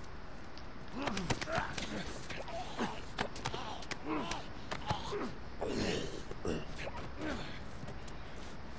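Bodies scuffle and thump in a struggle.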